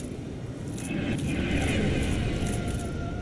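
Magic bolts hiss and zap past in a burst.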